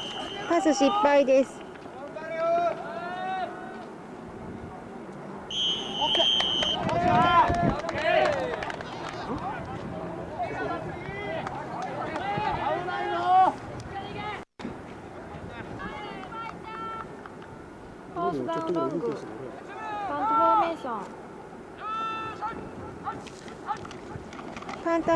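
Men and boys shout and call out loudly across an open field.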